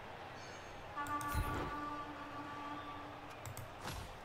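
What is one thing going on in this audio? An electronic chime sounds as a game menu opens.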